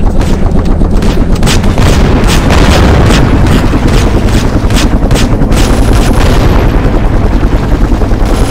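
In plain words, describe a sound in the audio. Helicopter rotor blades thump steadily.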